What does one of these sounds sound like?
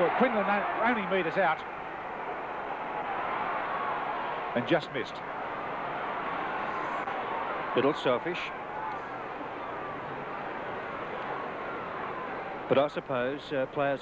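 A crowd murmurs softly in the distance.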